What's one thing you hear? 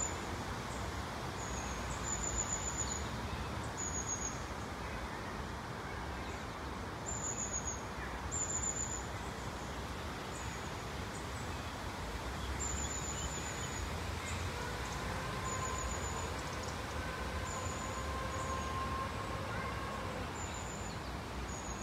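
Water flows gently in a river.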